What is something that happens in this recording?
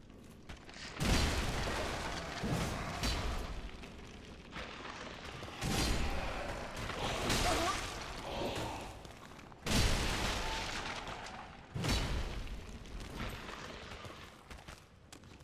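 Swords clash and strike in a fight, with heavy thuds.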